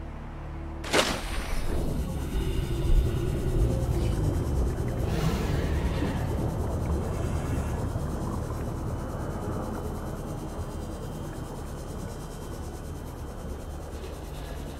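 A submarine rumbles and hums underwater.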